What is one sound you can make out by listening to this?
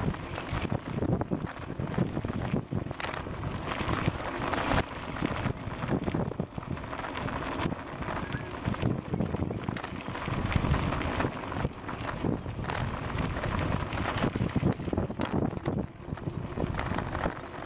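Wind rushes and buffets loudly against a microphone.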